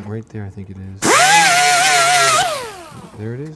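A power grinder whines loudly against metal.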